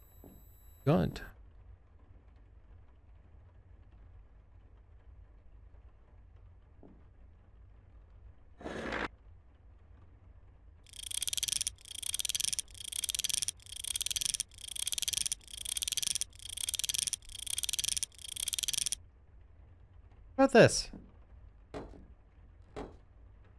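A young man talks briefly into a close microphone.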